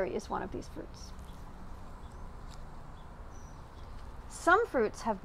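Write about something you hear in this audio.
A woman reads aloud calmly, close to a microphone.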